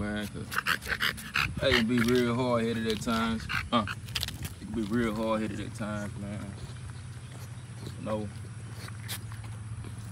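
A dog sniffs at the ground up close.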